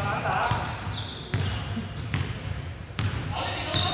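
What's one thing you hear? A basketball bounces on the court with a hollow thud.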